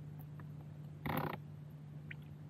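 A small fish splashes into the water close by.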